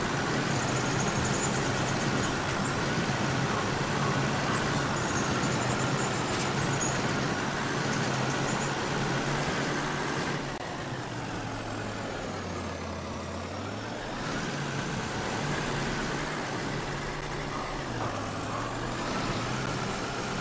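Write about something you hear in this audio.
A truck engine rumbles and strains steadily.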